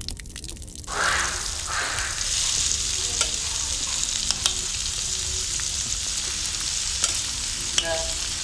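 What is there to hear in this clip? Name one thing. Oil sizzles and crackles loudly in a hot pan.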